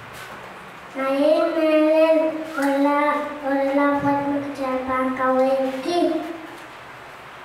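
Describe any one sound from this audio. A young child speaks in a high sing-song voice through a microphone and loudspeaker.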